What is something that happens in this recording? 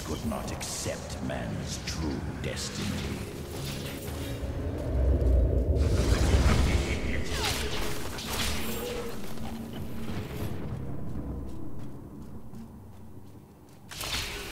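Game sword strikes and spell blasts clash and crackle.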